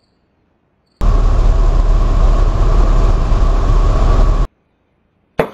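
A light aircraft engine roars loudly.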